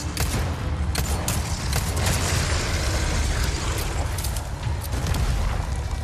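A creature growls and snarls.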